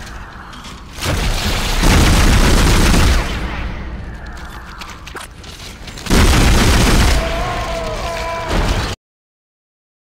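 A heavy futuristic gun fires with a loud, booming blast that fades away.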